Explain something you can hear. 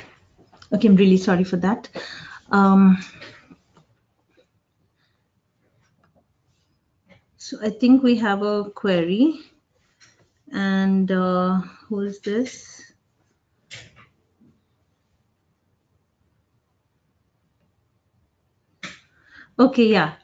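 A woman speaks calmly into a microphone in short phrases, with pauses.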